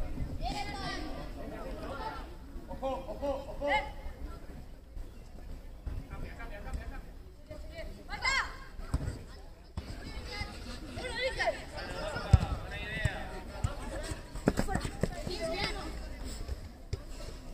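Children and adults shout and call out across an outdoor football pitch.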